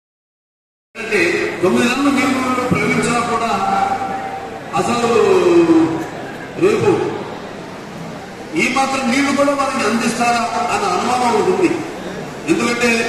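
A man speaks loudly with animation through a microphone, echoing over a loudspeaker.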